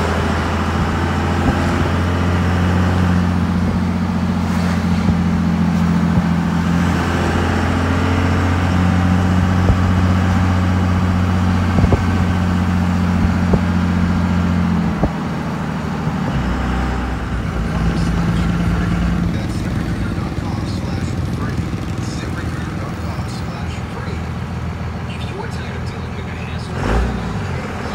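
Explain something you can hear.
A car engine hums steadily while driving slowly.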